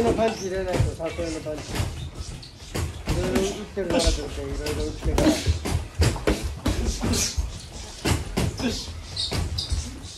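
Feet shuffle and squeak on a padded floor.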